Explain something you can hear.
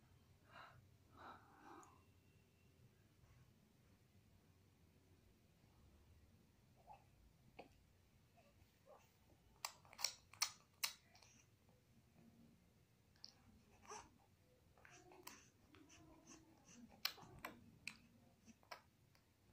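A baby coos and babbles softly close by.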